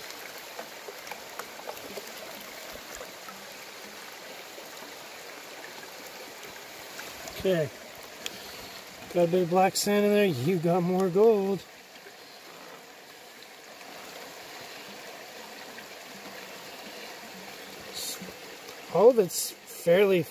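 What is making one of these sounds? Water swishes and splashes in a plastic pan.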